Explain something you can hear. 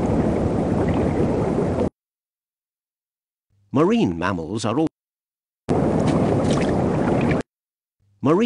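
Water rushes and hisses underwater.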